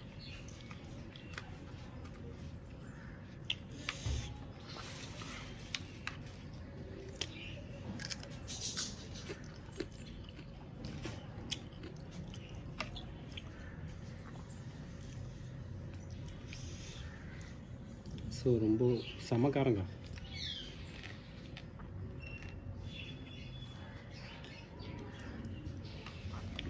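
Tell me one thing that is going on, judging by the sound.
A man chews food noisily close by.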